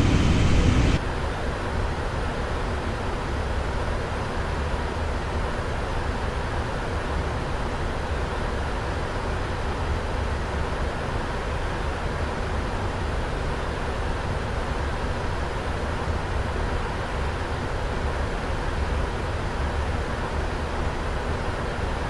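Jet engines hum low and muffled, as heard from inside an aircraft.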